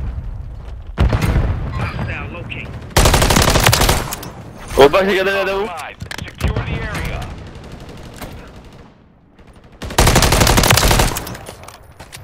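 Rapid gunfire rattles in short, loud bursts.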